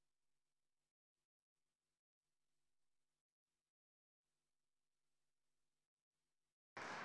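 Footsteps walk across a stone floor in a large echoing hall.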